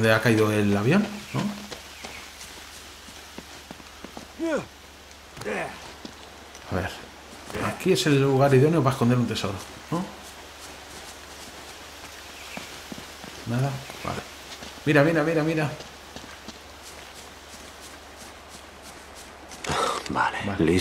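Footsteps tread softly on grass and stone.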